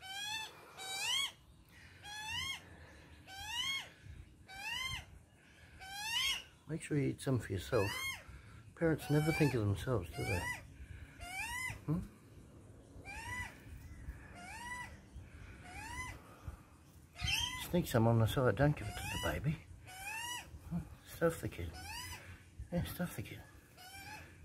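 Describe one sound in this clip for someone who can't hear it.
Small birds chirp over and over with short rising calls close by.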